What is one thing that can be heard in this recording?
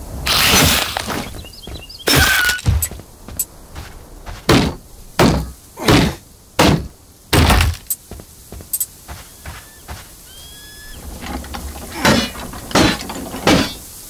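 Heavy blows thud and whoosh in quick bursts.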